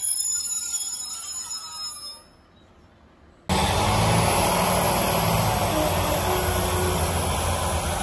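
A train rumbles past close by on the tracks.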